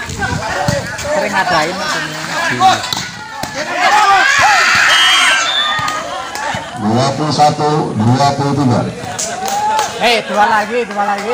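A crowd of men and women cheers and shouts loudly outdoors.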